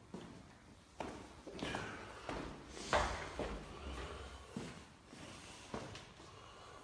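Footsteps thud on hard stairs and floor.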